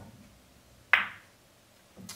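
Billiard balls knock together with a sharp clack.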